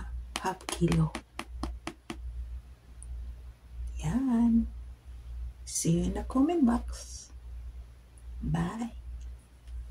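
A woman speaks close to a microphone with animation, in short bursts.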